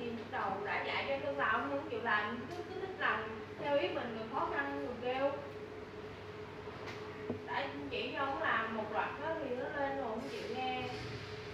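A young woman talks nearby with animation.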